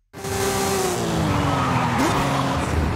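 Tyres screech as a car skids through a corner.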